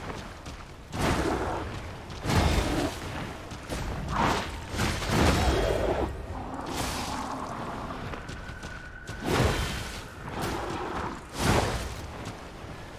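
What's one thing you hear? A blade swings and strikes with heavy impacts.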